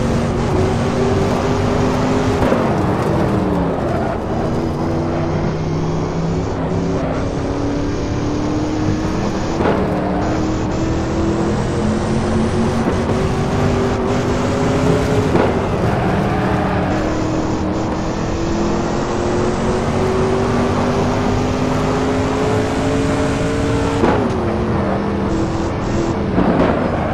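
Tyres rumble over the road surface.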